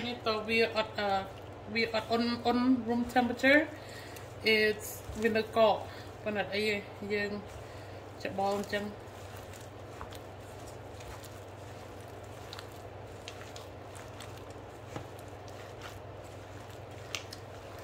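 Hands squish and squelch a soft, wet mixture in a metal bowl.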